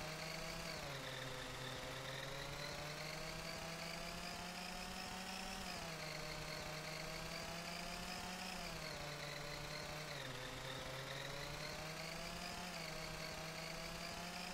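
A motorcycle engine hums steadily, its pitch rising and dropping as it shifts gears.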